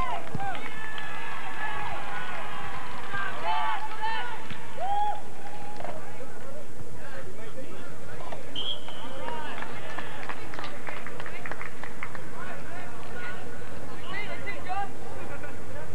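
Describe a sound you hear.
A crowd of spectators shouts and cheers outdoors at a distance.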